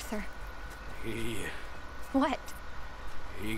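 A man answers in a low voice.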